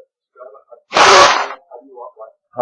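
An elderly man coughs loudly into a microphone.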